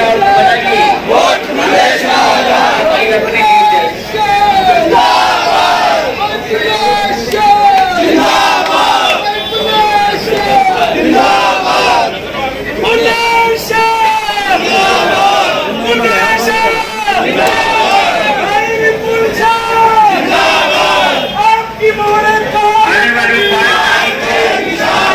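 A crowd of men shouts and chants loudly.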